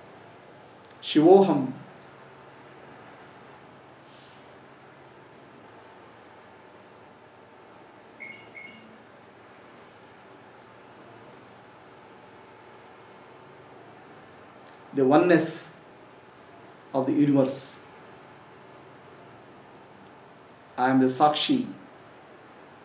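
A man speaks slowly and calmly into a close microphone, with long pauses.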